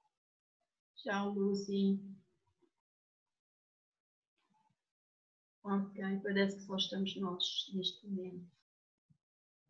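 A woman sings into a microphone, heard through an online call.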